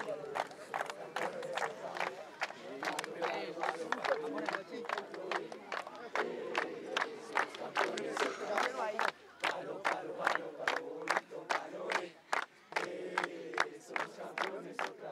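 A group of young men chant and cheer together loudly outdoors.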